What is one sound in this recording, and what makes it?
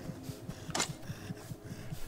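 A zombie groans nearby.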